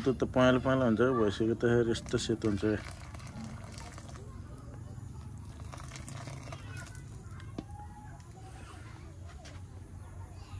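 A wood fire crackles softly.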